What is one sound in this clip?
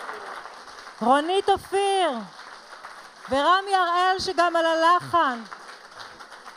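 A woman speaks animatedly through a microphone.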